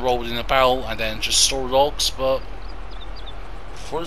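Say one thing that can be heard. A tractor engine idles with a steady low hum.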